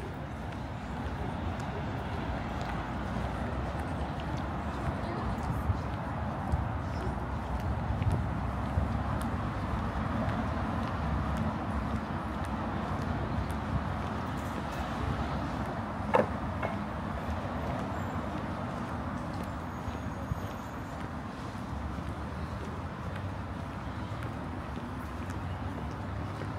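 City traffic hums steadily in the distance.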